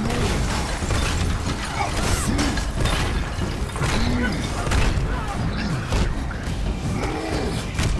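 Heavy punches thud and crash against armoured enemies.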